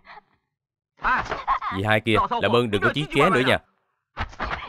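A young man speaks loudly and with animation, close by.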